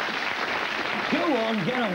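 A young man speaks up with animation.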